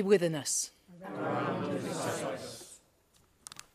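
A group of men and women sing a response together.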